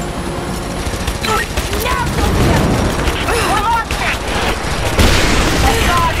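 A helicopter's rotor thuds close overhead.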